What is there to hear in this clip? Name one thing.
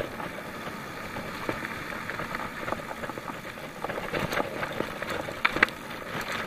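Bicycle tyres crunch and rattle over a rough dirt track.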